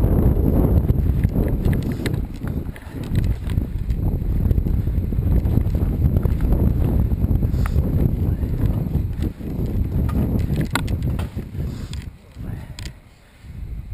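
Twigs and leaves brush and snap against a bicycle.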